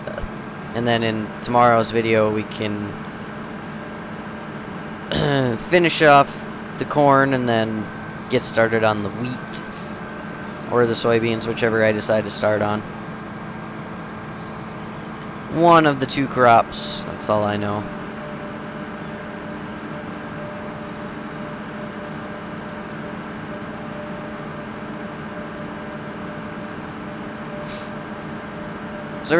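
A combine harvester engine hums steadily.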